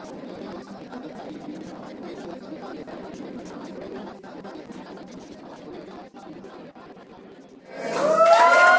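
A crowd of men and women sings softly together.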